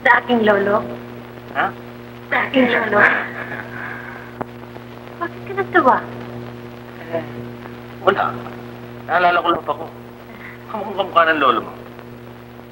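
A woman speaks brightly nearby, heard through an old, hissy recording.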